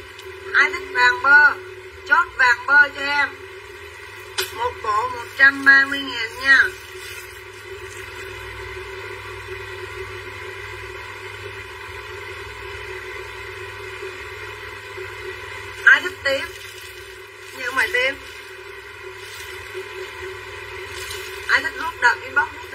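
A woman speaks with animation close to a microphone.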